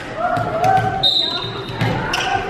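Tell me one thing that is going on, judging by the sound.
A referee's whistle blows shrilly.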